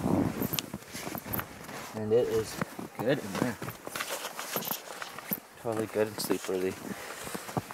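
A heavy tarp rustles and flaps as it is pulled.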